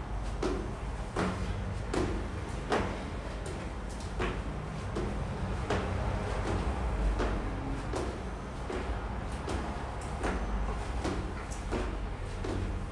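Feet shuffle and tap on a tiled floor.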